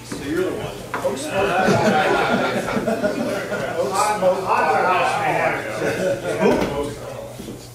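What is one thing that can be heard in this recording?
A man speaks calmly into a microphone, heard through loudspeakers in a room.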